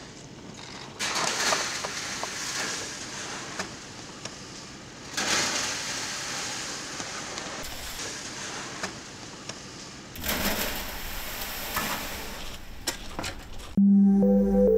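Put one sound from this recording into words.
Sand pours off a metal shovel with a rushing hiss.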